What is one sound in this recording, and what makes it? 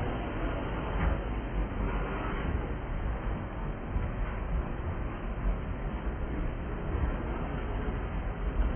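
A freight train rolls past close by, its steel wheels rumbling and clacking on the rails.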